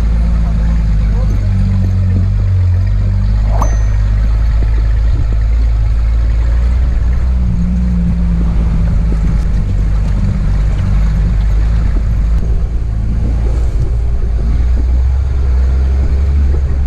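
Tyres rumble and splash over a rough, muddy dirt track.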